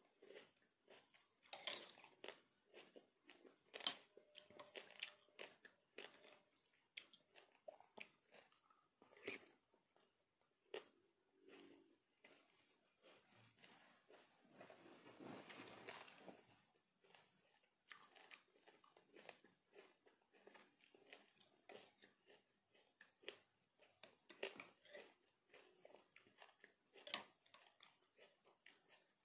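A middle-aged woman chews and slurps food close by.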